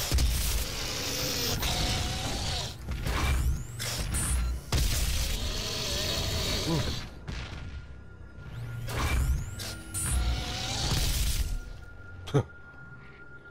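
Heavy guns fire in loud bursts with blasts and explosions.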